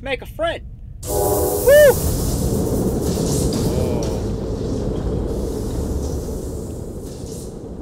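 A toy machine powers on and rumbles steadily.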